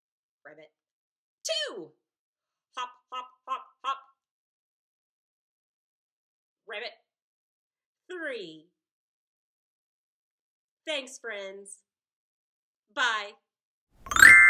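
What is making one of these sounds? A woman speaks animatedly and close by, with pauses between short phrases.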